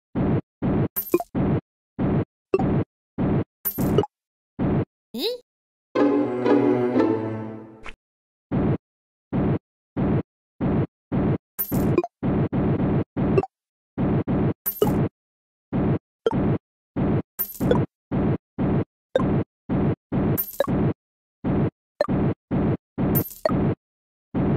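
High chimes ring when coins are collected.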